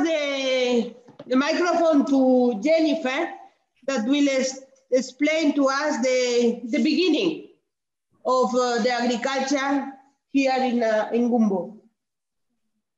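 A man speaks calmly, heard through an online call.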